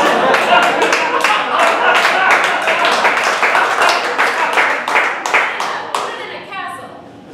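An audience claps and cheers in an echoing hall.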